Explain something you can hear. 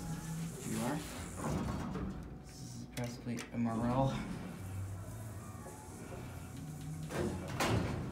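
Elevator doors slide and rumble.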